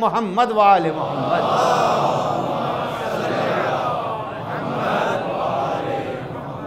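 An elderly man speaks with feeling into a microphone.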